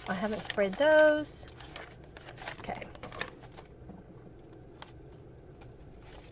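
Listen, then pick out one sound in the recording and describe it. Paper rustles and slides as a sheet is peeled away.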